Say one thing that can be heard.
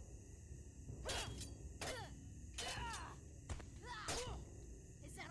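Spears and shields clash with sharp metallic hits.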